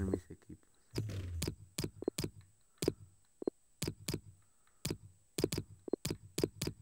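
Short menu clicks and ticks sound again and again as selections change.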